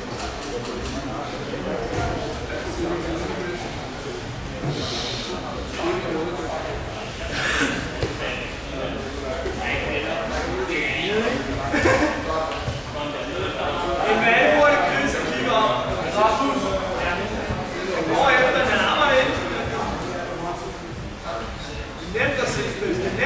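A crowd of men shout encouragement and chatter in a large echoing hall.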